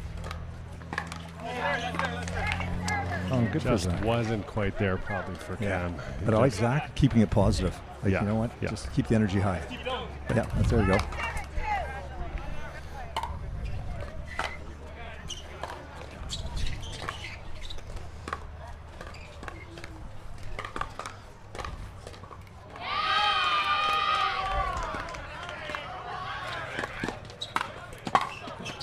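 Paddles pop sharply against a plastic ball.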